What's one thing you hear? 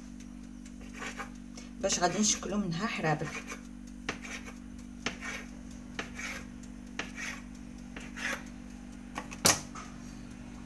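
A knife taps on a hard surface as it cuts dough.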